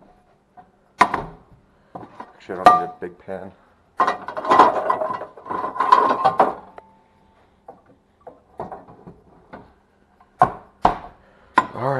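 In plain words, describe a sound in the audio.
A cabinet door opens and bangs shut.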